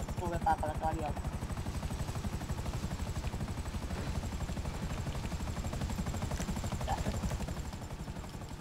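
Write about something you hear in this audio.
A helicopter's rotor thumps steadily as it hovers close by.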